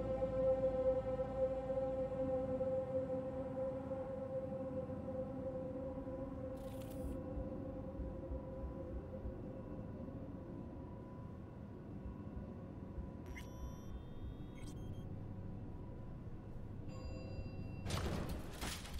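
An elevator hums steadily as it moves down.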